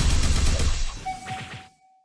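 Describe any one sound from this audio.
Fire explosions roar.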